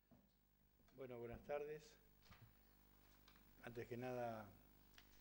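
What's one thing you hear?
An elderly man speaks calmly into a microphone in a small echoing room.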